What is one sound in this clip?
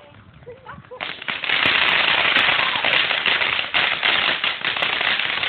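A firework fountain hisses and crackles loudly, close by.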